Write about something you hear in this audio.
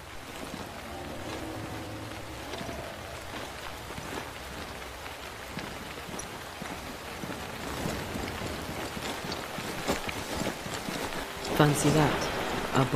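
Footsteps crunch on grass and gravel at a quick pace.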